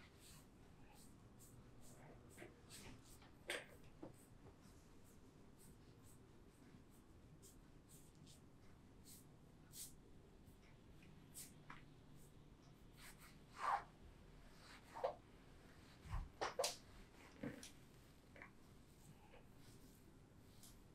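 Fingers rub and tap softly against hair and skin, close by.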